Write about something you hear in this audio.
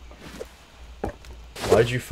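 A spear strikes a tree trunk with a dull thud.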